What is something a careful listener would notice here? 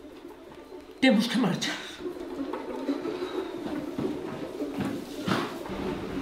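An elderly woman speaks loudly and with animation nearby.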